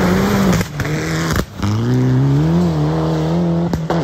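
Gravel sprays and rattles under sliding tyres.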